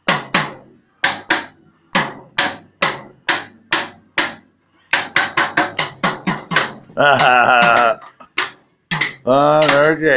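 A small child bangs rhythmically on a toy drum with sticks.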